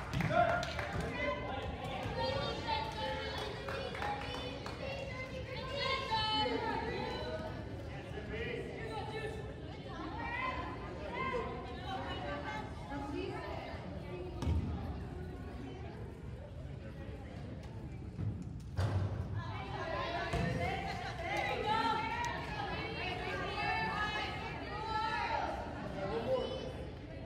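A crowd of spectators chatters throughout in a large echoing gym.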